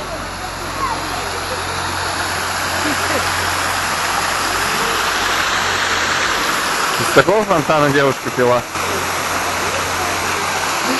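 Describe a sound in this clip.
A fountain splashes loudly and steadily.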